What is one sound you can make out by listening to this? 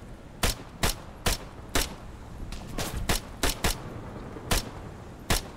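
Rifle shots fire one at a time in an uneven rhythm.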